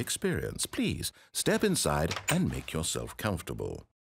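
A wooden door opens with a creak.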